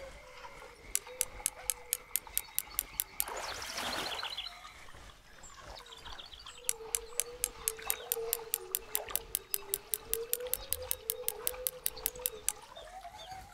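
A fishing reel clicks rapidly as its line is wound in.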